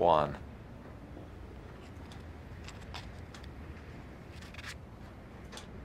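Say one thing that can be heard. A matchbox rattles and scrapes softly in a man's hands.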